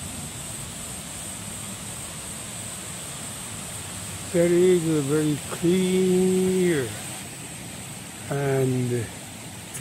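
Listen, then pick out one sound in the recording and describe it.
A stream trickles softly over rocks.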